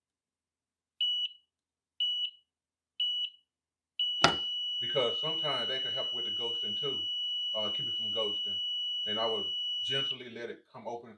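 An electronic machine beeps in short, high pips, then in one long steady tone.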